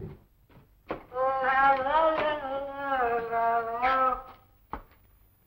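A woman sings a melody close by.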